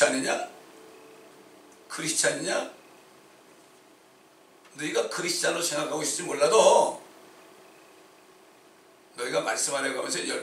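A middle-aged man speaks forcefully through a microphone, with pauses between phrases.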